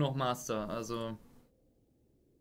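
A man speaks briefly into a close microphone.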